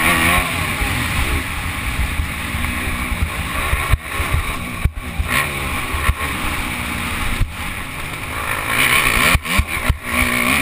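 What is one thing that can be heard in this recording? A dirt bike engine revs loudly up close, rising and falling.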